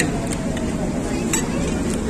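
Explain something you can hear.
A metal spoon clinks against a ceramic plate.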